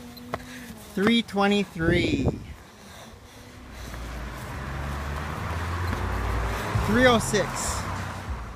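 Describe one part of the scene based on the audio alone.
A young boy speaks excitedly close by.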